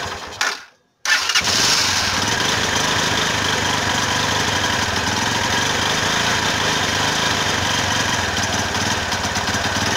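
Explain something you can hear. A motorcycle engine idles steadily close by.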